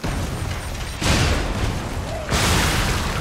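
An explosion booms with a loud roar.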